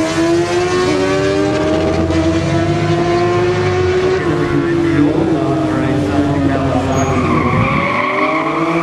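Motorcycle engines roar as they race away down the road.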